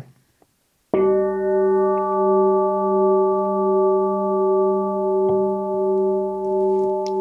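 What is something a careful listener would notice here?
A singing bowl rings with a long, steady, humming tone.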